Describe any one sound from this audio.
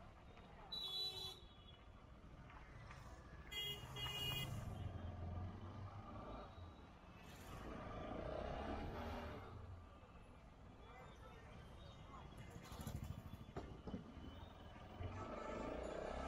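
Traffic and street bustle murmur steadily outdoors.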